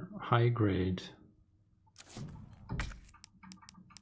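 A soft electronic menu click sounds as a page changes.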